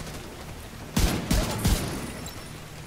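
Gunshots fire in three quick bursts.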